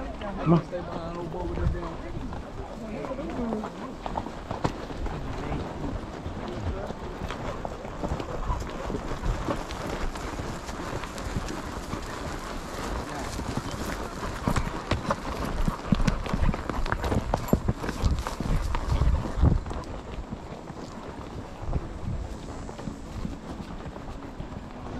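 Horse hooves thud and clop on a dirt trail.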